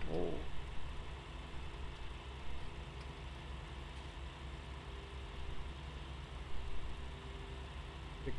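A tractor engine rumbles steadily from inside the cab.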